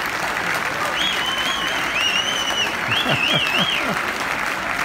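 Members of a crowd whistle shrilly.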